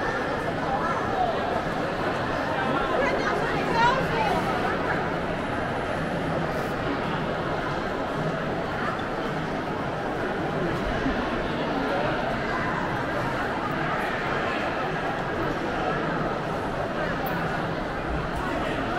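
A crowd of people chatters all around in a large echoing hall.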